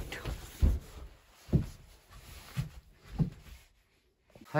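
Footsteps thud on a floor close by.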